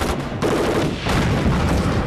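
Explosions boom close by.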